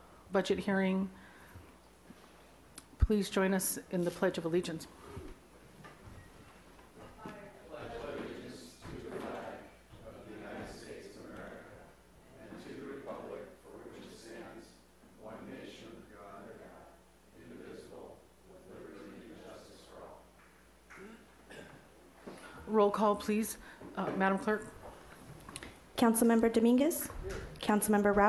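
A man speaks calmly into a microphone in a room.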